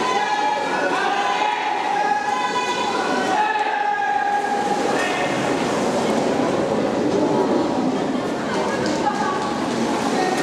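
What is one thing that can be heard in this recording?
Backstroke swimmers splash through the water with kicks and arm strokes.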